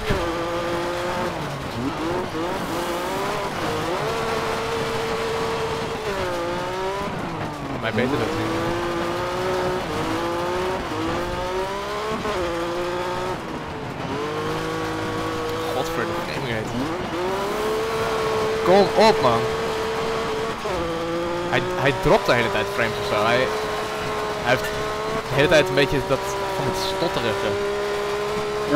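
A rally car engine revs hard, rising and falling as gears change.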